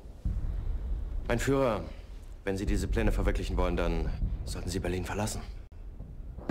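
A younger man answers calmly.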